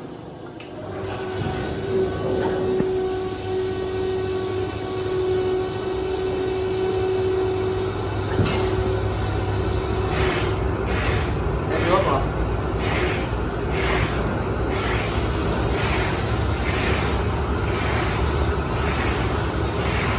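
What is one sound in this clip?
A spray gun hisses as it sprays.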